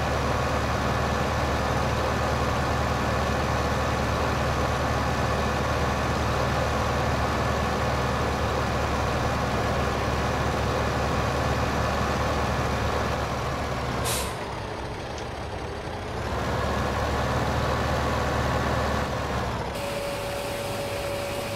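A tractor engine rumbles steadily as it drives.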